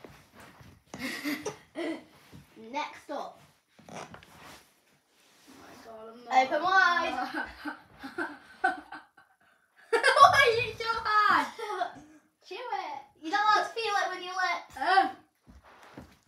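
A young boy talks and laughs close by.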